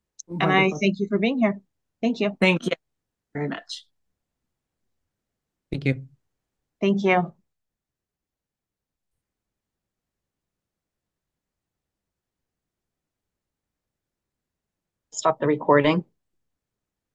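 A woman speaks through an online call, with pauses between phrases.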